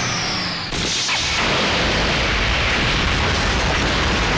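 An explosion booms and flames roar.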